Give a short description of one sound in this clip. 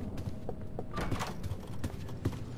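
A door thuds open.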